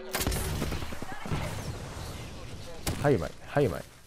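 An explosion booms nearby.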